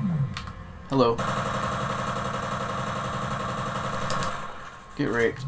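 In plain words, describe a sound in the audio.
A rifle fires a long, rapid burst.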